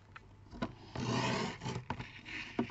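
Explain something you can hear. A paper trimmer blade slides along and cuts through paper.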